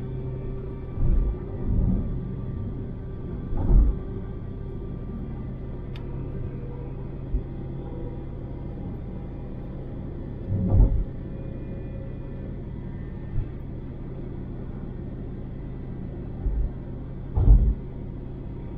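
Thuds sound as the car passes over joints in the road.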